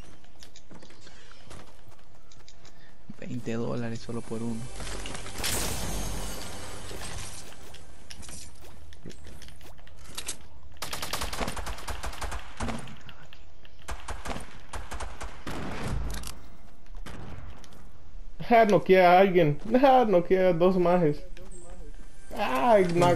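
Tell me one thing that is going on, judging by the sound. Footsteps patter on pavement.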